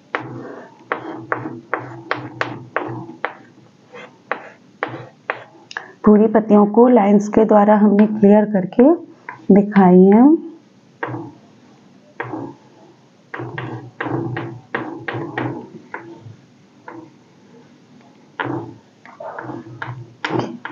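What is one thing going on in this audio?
Chalk taps and scratches against a board.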